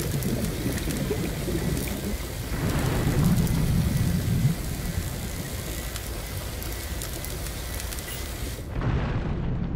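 Bubbles fizz and hiss underwater.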